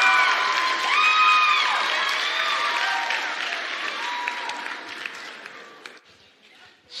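An audience cheers and whistles loudly in a large hall, then fades.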